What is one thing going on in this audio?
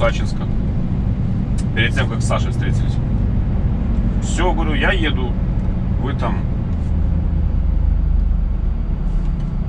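A truck's diesel engine rumbles steadily from inside the cab.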